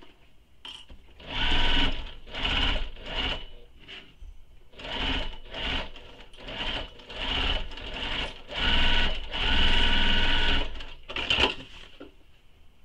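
A sewing machine runs in short bursts, whirring and stitching.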